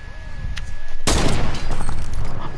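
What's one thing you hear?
A rifle fires a single loud shot that echoes.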